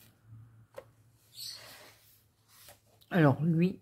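A page of a book is turned with a papery rustle.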